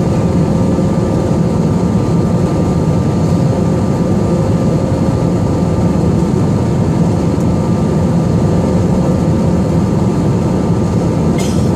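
A jet engine roars steadily, heard from inside an airliner cabin.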